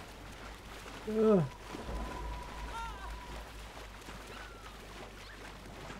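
A block of ice crashes down into water with a heavy splash.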